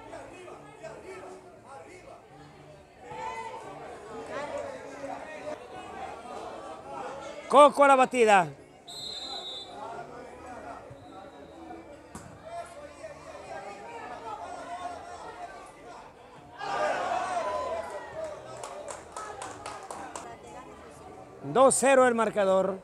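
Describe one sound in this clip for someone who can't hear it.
A crowd of men and women chatters and cheers outdoors.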